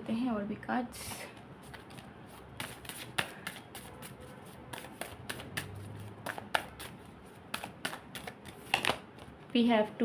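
A deck of cards flicks and clicks as it is shuffled by hand.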